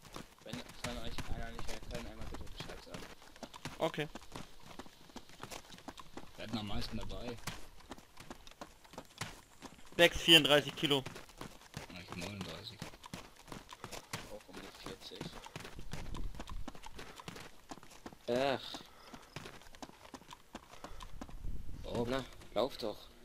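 Footsteps thud quickly on a gravel road as a soldier runs.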